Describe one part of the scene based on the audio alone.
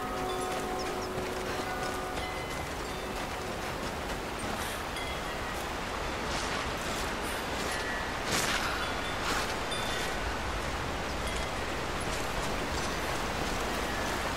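Footsteps crunch on gravel and stone.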